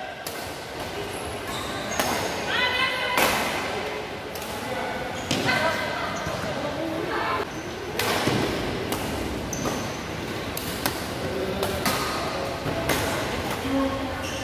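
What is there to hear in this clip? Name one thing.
Shoes squeak sharply on a court floor.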